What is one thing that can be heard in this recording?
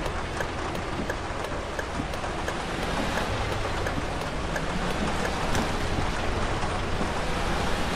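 A turn signal ticks at an even pace.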